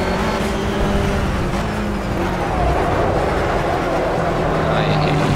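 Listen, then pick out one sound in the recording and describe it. A four-cylinder race car engine drops in pitch as the car slows for a corner.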